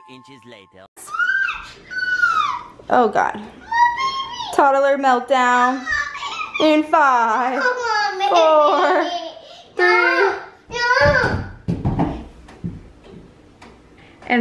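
A toddler squeals and babbles happily close by.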